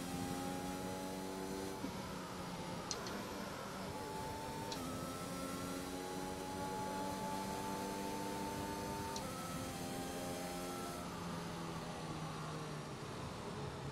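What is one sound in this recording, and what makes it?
A racing car engine whines steadily at high revs, shifting gear now and then.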